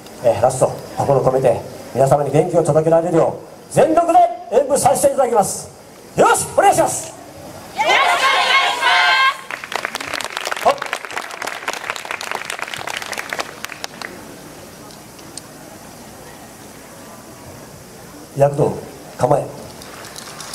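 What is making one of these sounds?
A group of young women chant loudly in unison.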